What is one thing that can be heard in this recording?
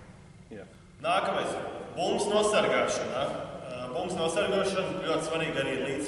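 A man speaks calmly, explaining, in an echoing hall.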